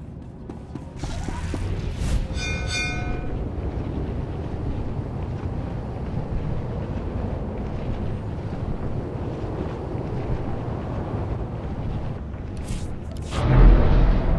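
A hovering speeder's engine hums steadily.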